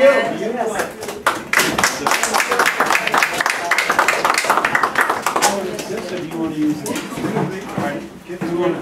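Older men and women chat nearby.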